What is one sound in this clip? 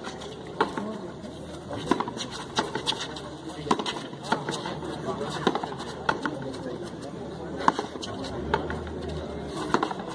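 A ball smacks sharply against a wall and the ground, echoing in a walled court.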